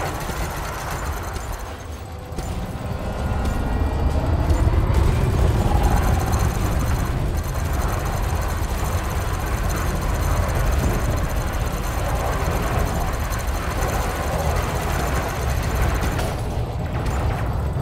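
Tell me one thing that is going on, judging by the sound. A low engine rumble drones steadily.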